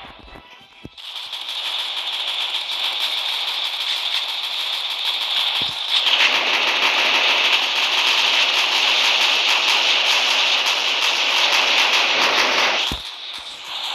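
A machine gun fires in rapid, continuous bursts.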